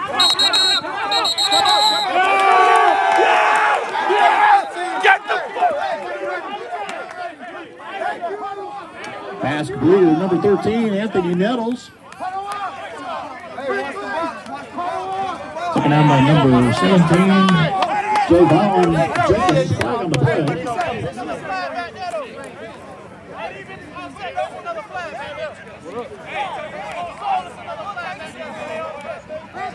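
Men and boys shout and cheer loudly nearby.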